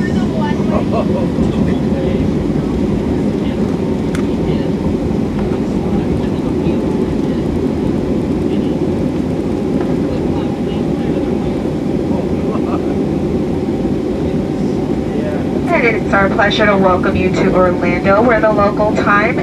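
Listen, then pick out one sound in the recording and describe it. A plane's engines rumble steadily, heard from inside the cabin.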